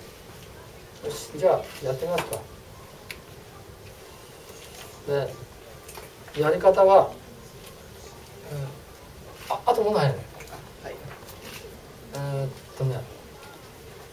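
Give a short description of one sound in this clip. An older man speaks calmly in short phrases through a microphone.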